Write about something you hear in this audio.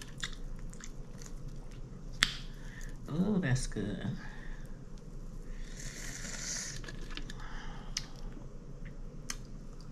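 A woman tears apart crispy fried chicken close to a microphone.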